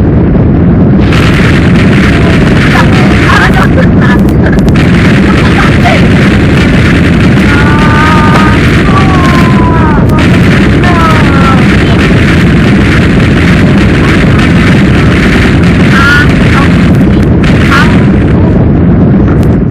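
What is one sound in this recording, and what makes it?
Boulders crash and tumble with heavy rumbling thuds.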